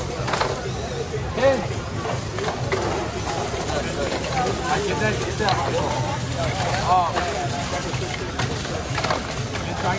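Robot motors whir as robots drive around.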